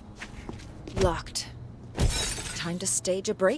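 Glass shatters loudly close by.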